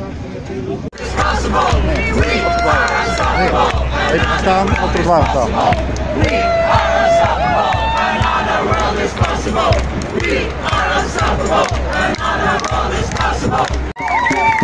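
A large crowd outdoors chants and sings together loudly.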